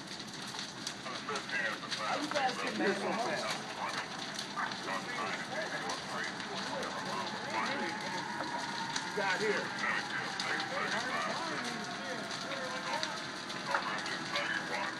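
A large fire roars and crackles steadily.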